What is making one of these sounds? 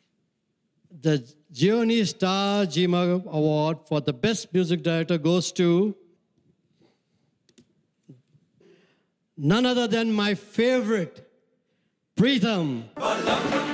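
An elderly man speaks slowly into a microphone, heard over loudspeakers in a large hall.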